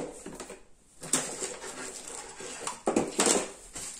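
A plastic bag crinkles and rustles as it is picked up.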